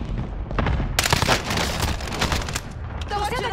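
Rapid gunfire rings out from a video game.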